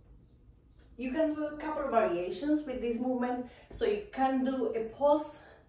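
A young woman speaks clearly and calmly, close by.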